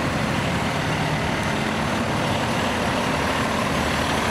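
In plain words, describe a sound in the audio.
Another fire truck's engine roars as it pulls out and approaches.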